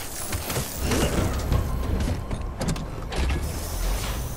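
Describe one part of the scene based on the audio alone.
Metal parts clank and thud.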